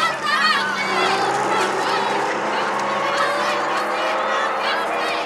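A tractor engine rumbles.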